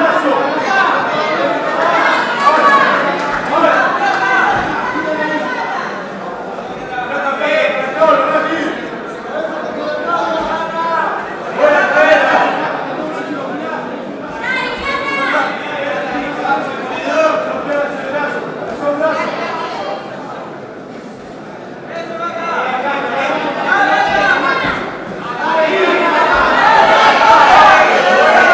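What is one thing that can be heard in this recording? A crowd shouts and cheers loudly all around.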